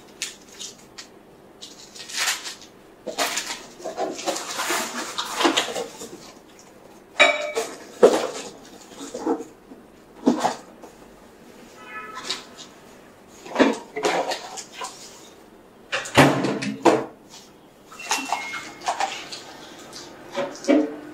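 Things rustle and clatter as someone rummages through a bag.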